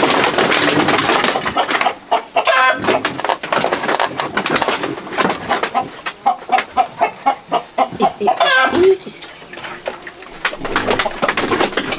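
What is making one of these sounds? Chickens cluck close by.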